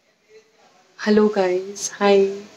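A young woman speaks close to the microphone in a bright, cheerful voice.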